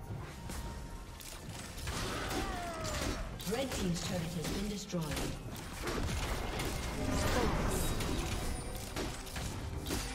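Magic spells whoosh and crackle in a fast fight.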